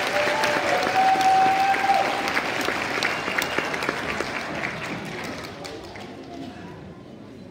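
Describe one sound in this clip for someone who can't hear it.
A large crowd cheers and applauds loudly in an echoing hall, then dies down.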